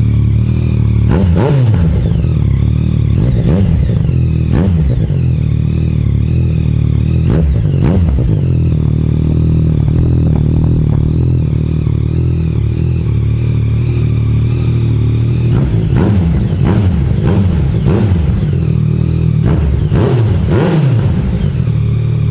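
A motorcycle engine revs up sharply and falls back, again and again.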